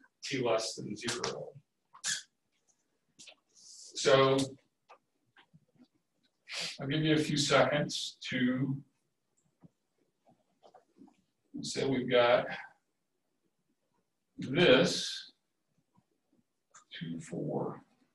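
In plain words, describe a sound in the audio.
A man speaks calmly in bursts, as if lecturing, in a quiet room.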